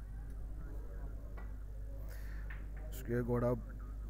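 Snooker balls knock together with a hard clack.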